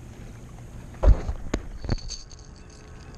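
Something knocks against a plastic kayak hull a few times.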